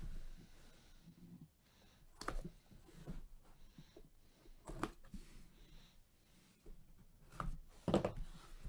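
A cardboard box thumps and scrapes as it is handled.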